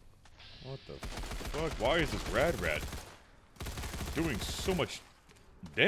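Gunfire bursts rapidly from a rifle.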